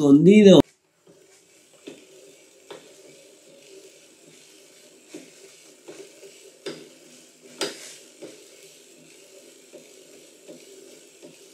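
A bike trainer hums steadily as a rider pedals.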